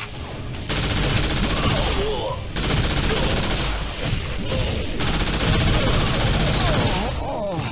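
A submachine gun fires rapid bursts.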